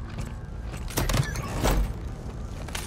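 A crate is smashed with loud crunching blows.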